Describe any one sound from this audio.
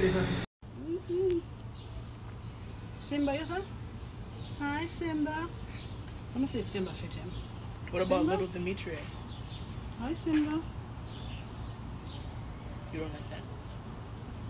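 A woman talks softly and sweetly, close by.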